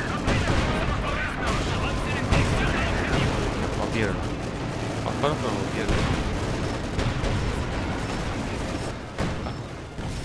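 Tank engines rumble low and steadily.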